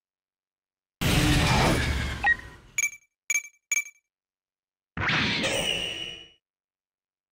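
A video game's weapons fire with loud electronic blasts and bursts.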